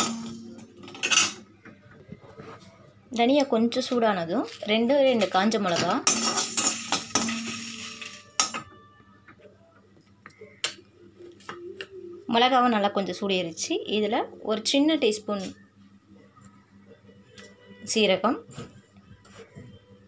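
A metal spatula scrapes and stirs seeds in a pan.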